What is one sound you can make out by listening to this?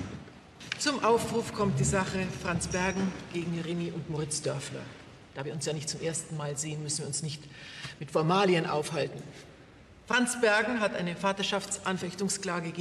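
A middle-aged woman speaks calmly and firmly.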